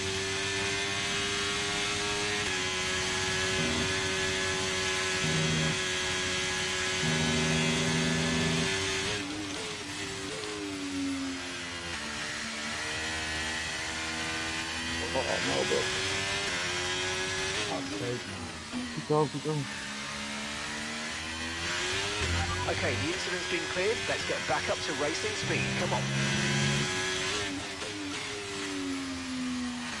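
A racing car engine screams at high revs, rising and falling as it shifts gears and slows for corners.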